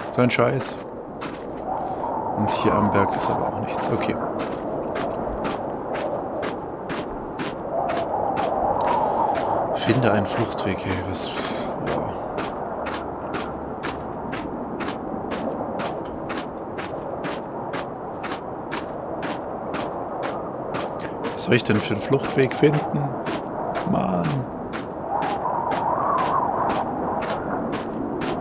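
Wind howls steadily in a blizzard.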